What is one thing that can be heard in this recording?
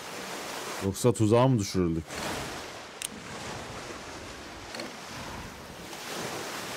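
Waves wash against a sailing ship's hull.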